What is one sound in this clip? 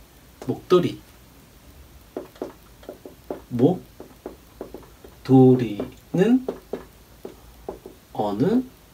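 A man speaks calmly and clearly into a close microphone.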